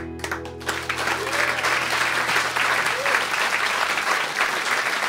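Acoustic and electric guitars ring out a final chord and fade away.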